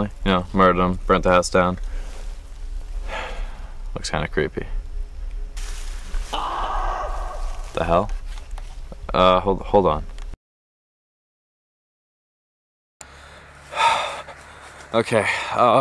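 A young man talks close up in a low, hushed voice.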